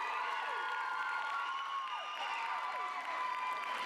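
Shoes step and tap on a wooden stage.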